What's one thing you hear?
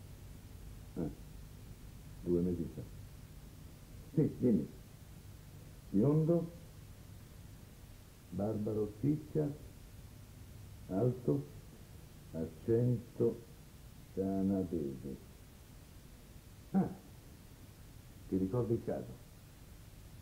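A middle-aged man speaks into a telephone in short, halting phrases.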